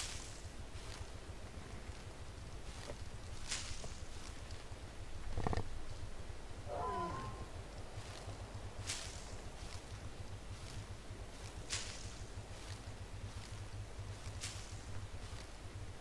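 Leafy plants rustle sharply as they are picked by hand.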